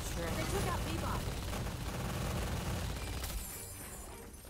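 Rapid gunfire and blasts crackle loudly.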